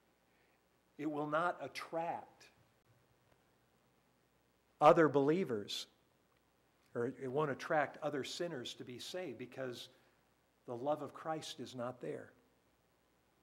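An elderly man preaches with emphasis through a microphone, in short bursts with pauses.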